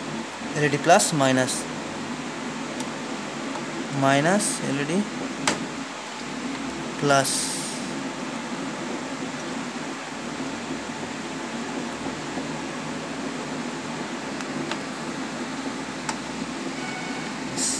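A plastic connector clicks and scrapes as it is pushed into a socket.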